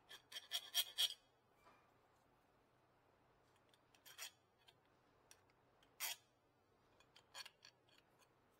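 Metal scrapes against a brake pad in short, rough strokes.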